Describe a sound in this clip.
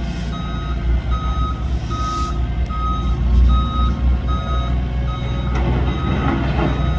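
A reversing alarm beeps at an even pace.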